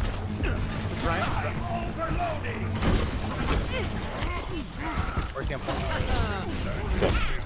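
A humming energy beam crackles.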